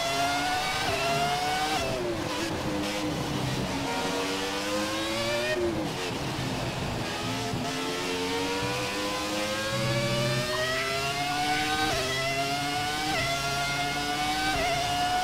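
A racing car engine screams, dropping in pitch on braking and climbing steadily as it accelerates and shifts gears.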